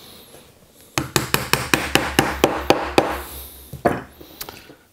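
A mallet taps rapidly on wood.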